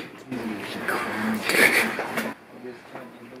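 A young woman laughs excitedly close by.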